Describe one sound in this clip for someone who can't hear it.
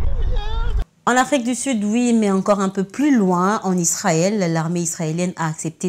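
A young woman speaks clearly and steadily into a microphone.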